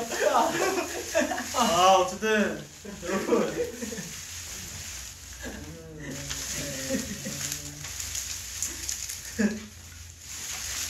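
Young men talk and laugh with animation close to a microphone.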